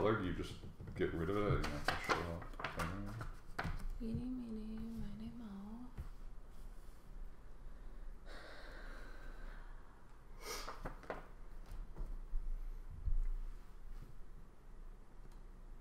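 Playing cards tap and rustle on a table.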